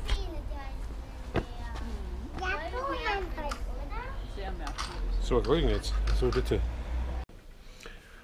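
Young children chatter close by.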